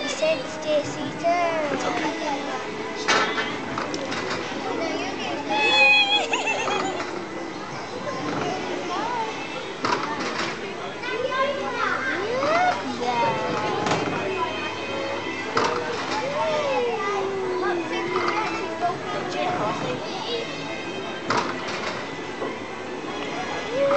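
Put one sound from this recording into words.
A young girl chatters close by.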